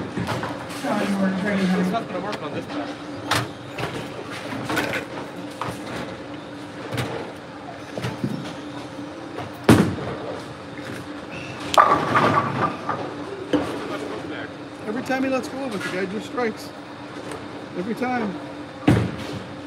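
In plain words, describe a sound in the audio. A man speaks casually, close by, in a large echoing hall.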